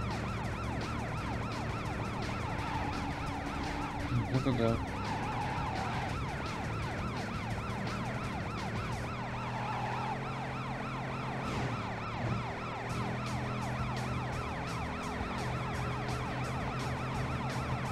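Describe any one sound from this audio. A police siren wails steadily.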